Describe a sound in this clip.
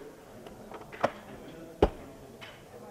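A button on a coffee machine clicks.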